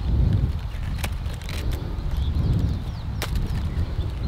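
A vegetable stem snaps off.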